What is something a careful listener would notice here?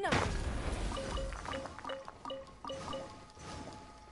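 A bright chime rings out several times in quick succession.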